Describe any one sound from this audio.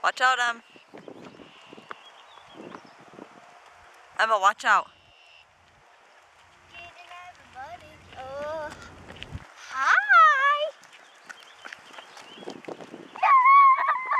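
A young girl shouts and squeals excitedly close by.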